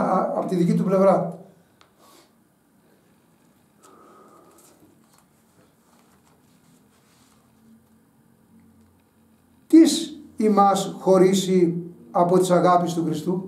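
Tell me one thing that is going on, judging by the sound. An elderly man speaks with animation close to the microphone, pausing between phrases.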